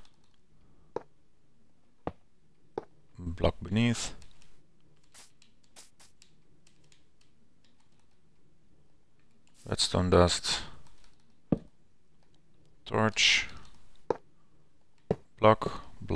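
Game blocks are placed with short soft thuds.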